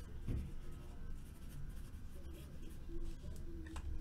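A marker squeaks as it writes on a card.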